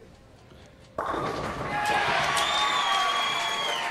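Bowling pins crash and clatter loudly.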